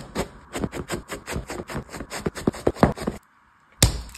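Fingers tear and crunch soft bread.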